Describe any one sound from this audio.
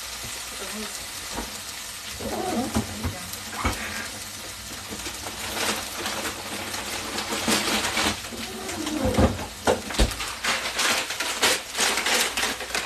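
Meat sizzles and crackles in a hot pan.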